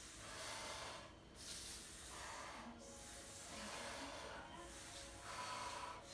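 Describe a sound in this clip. A woman breathes hard in bursts.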